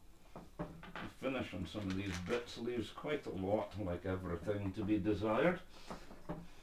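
A middle-aged man speaks calmly nearby.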